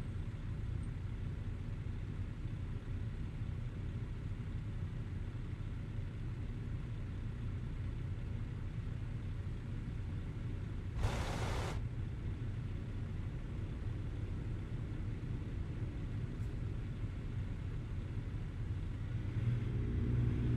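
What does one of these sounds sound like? A truck engine idles with a low steady rumble.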